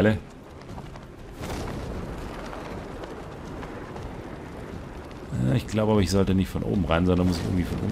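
Wind rushes steadily past during a long glide.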